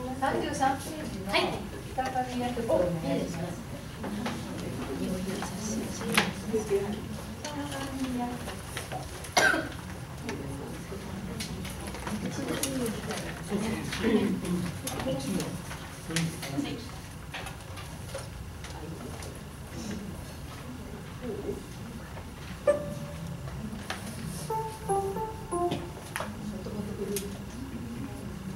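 An acoustic guitar strums.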